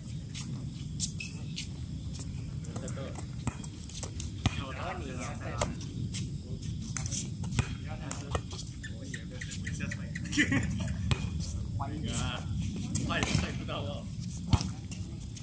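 A volleyball thuds sharply as it is hit outdoors.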